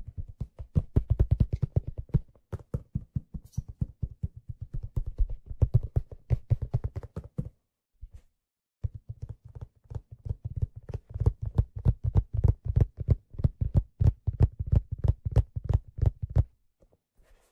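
Fingers brush and rustle right against a microphone.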